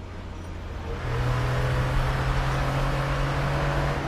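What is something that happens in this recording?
A vehicle engine rumbles steadily nearby.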